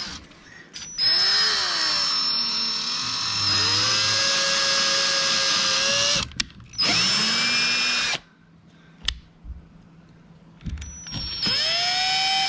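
A cordless drill whirs in loud bursts, its pitch rising and falling.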